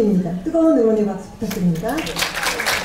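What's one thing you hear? A woman announces over a loudspeaker in a large hall.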